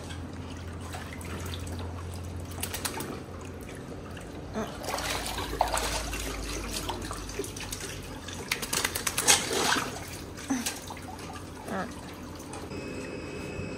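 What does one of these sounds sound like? Water splashes as a dog paddles in a pool.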